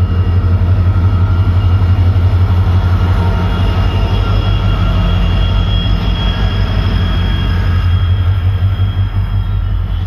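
A diesel locomotive rumbles past loudly, its engine throbbing.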